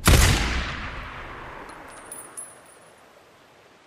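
A rifle shot cracks and echoes away slowly.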